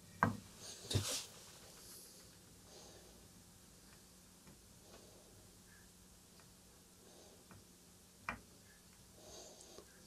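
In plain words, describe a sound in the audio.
A cotton swab scrubs and scratches softly against metal parts.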